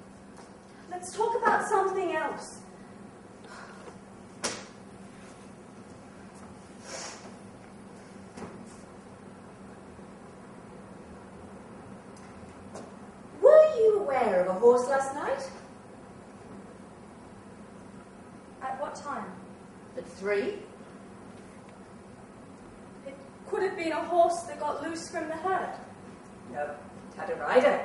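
A young woman speaks with emotion, heard from a distance in a large hall.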